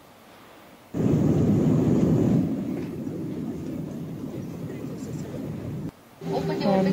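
A jet engine roars steadily as a plane taxis.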